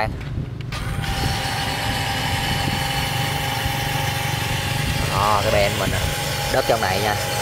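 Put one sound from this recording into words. A small electric motor whines steadily as a toy dump truck drives and tips its bed.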